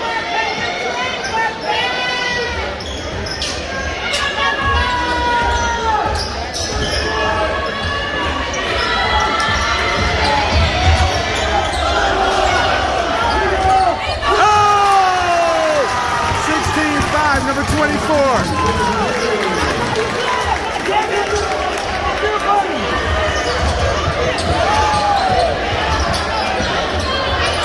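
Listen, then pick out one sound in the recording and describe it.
A large crowd murmurs and chatters in an echoing gym.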